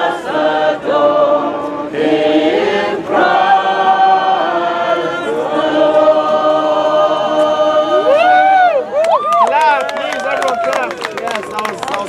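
A group of people sings together outdoors.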